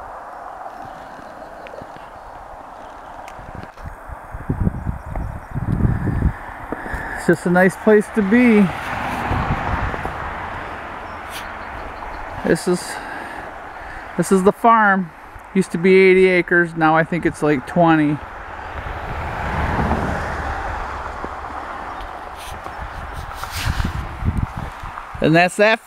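Wind blows outdoors and buffets the microphone in gusts.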